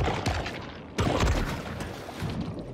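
Water splashes loudly as a creature leaps out of it.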